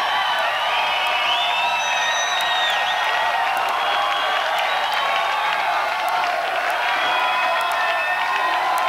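A crowd whistles shrilly.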